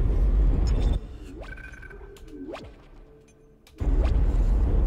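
Short electronic blips sound as a menu is browsed.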